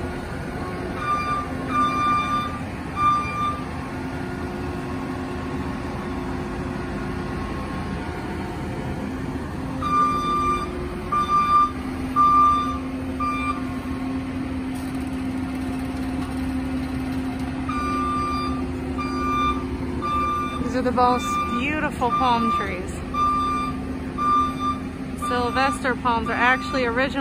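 A loader's reversing alarm beeps in short repeated bursts.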